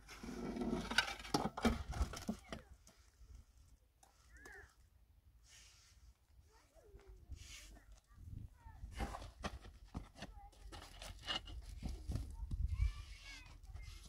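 Stones and blocks knock and scrape nearby.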